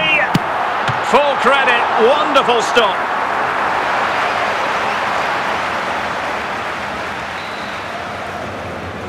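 A stadium crowd roars and cheers loudly.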